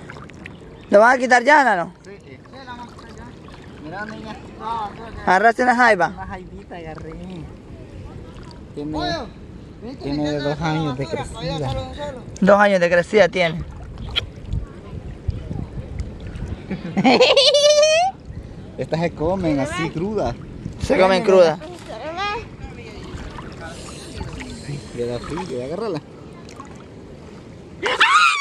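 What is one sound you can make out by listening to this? Water splashes around people wading.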